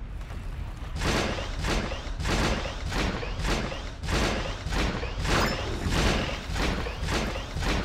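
Footsteps thud quickly in a steady rhythm.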